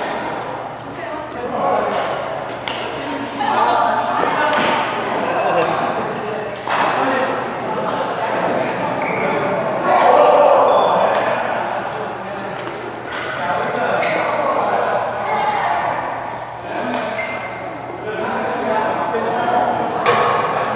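Men call out and chatter in a large echoing hall.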